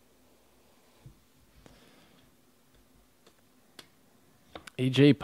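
Trading cards rustle and click softly as hands shuffle through them.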